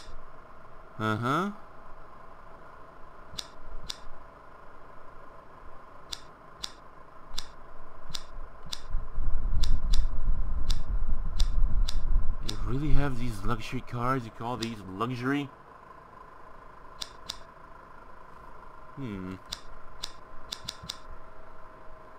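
Short menu clicks tick repeatedly as selections change.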